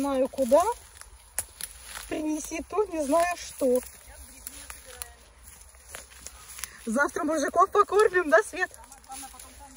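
An elderly woman talks with animation nearby.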